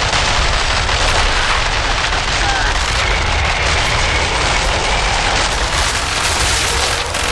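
Creatures screech and shriek.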